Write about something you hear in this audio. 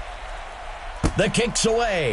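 A football is kicked with a sharp thump.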